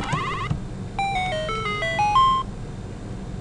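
A short electronic jingle plays a run of falling and rising notes.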